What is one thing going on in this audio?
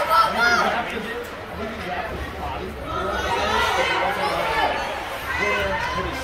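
People in the stands talk and call out nearby, echoing in a large hall.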